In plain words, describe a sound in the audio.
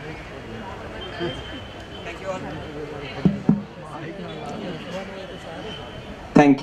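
A man speaks with animation into a microphone, heard over a loudspeaker outdoors.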